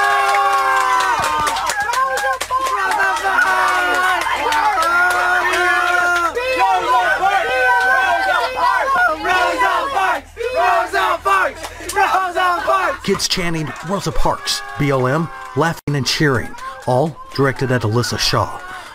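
A crowd of teenagers shouts and chatters.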